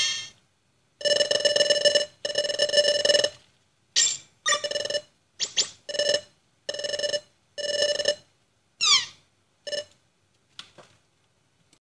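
Game text beeps chatter rapidly in short bursts.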